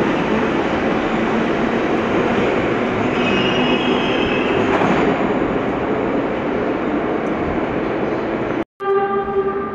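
A metro train rumbles loudly as it pulls away through an echoing tunnel.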